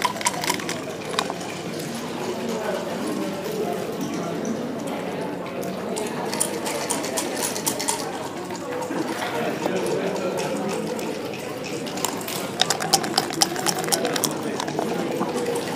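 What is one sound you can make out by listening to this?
Dice rattle and tumble onto a wooden board.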